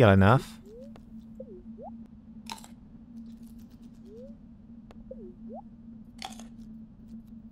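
Short bubbly game sound effects chirp and blip.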